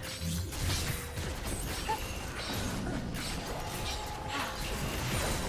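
Magic blasts whoosh and crackle in a busy video game battle.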